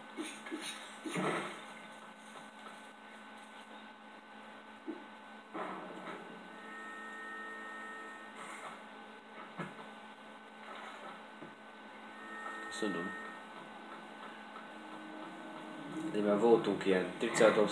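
Video game music plays softly from a television speaker.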